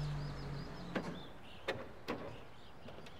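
A car door clicks open and thuds.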